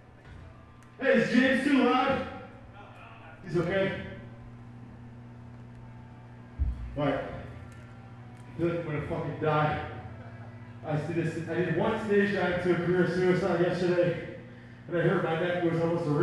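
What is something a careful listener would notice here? An electric guitar plays loud bursts of chords.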